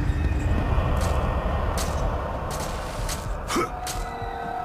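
Thick vines rustle and scrape in quick bursts as someone climbs them.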